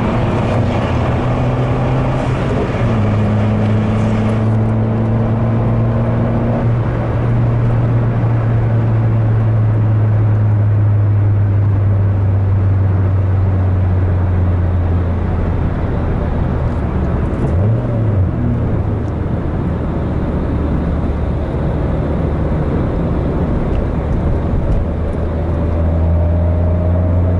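Tyres roar on a road.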